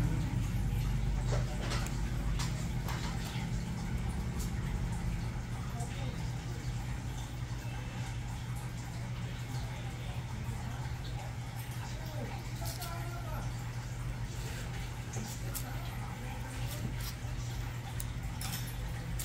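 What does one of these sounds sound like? Nail clippers snip at a toenail with small sharp clicks.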